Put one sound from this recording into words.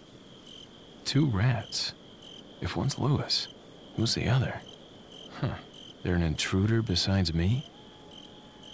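A young man speaks calmly through a radio.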